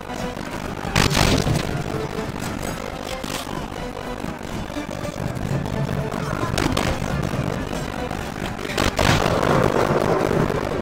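Loud blasts boom.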